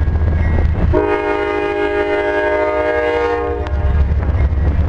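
A train horn blasts loudly.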